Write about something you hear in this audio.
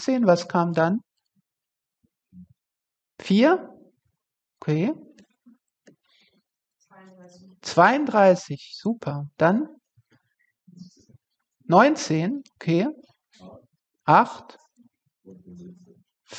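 A woman speaks calmly and slowly into a close microphone, pausing between phrases.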